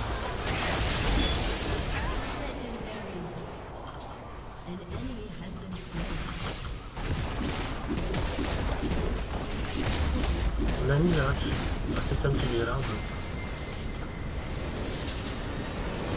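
Game combat sounds of spells and weapon strikes clash rapidly.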